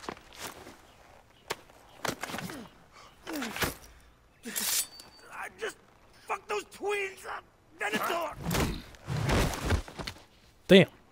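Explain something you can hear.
A man snarls and struggles in a scuffle.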